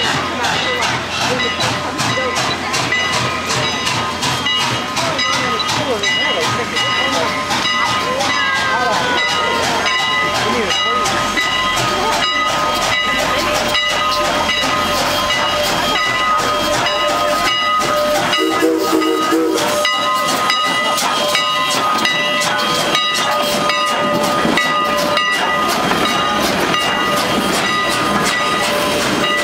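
A steam locomotive chuffs as it approaches slowly.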